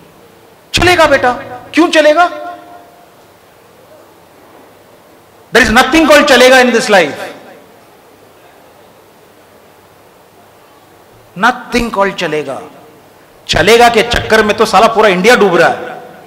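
An older man speaks with emphasis into a microphone over a loudspeaker, pausing between phrases.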